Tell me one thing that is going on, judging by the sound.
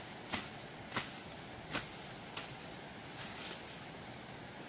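Leafy plants rustle and swish as a person moves through them.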